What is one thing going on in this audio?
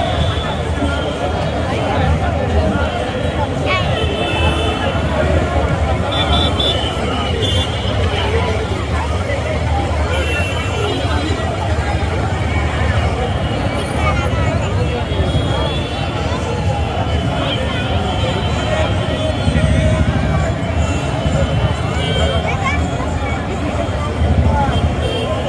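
A large outdoor crowd chatters and cheers loudly.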